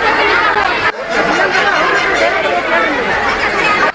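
A man speaks loudly into a microphone over the crowd.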